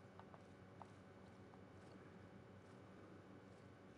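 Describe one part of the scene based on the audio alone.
Water gurgles and bubbles underwater.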